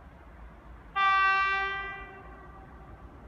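A train horn sounds a loud, sustained blast from a distance.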